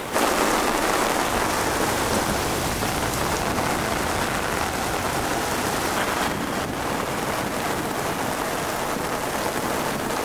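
Heavy rain pours steadily onto the sea.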